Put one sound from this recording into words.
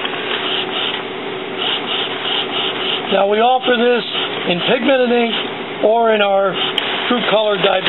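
A printer's print head whirs back and forth as the printer runs.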